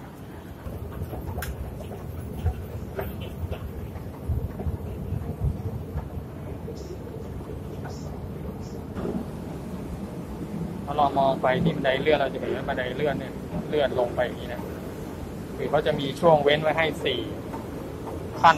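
An escalator rumbles steadily.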